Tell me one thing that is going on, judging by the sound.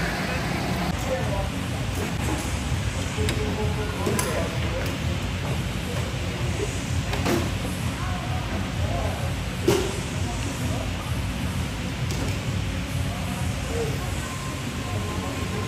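Men and women chatter in a large echoing hall.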